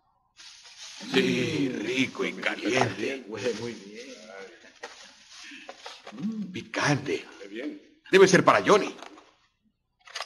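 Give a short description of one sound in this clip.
A man speaks at close range.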